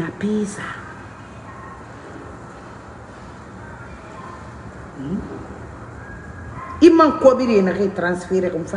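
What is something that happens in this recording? A woman speaks calmly and close to a microphone, with pauses.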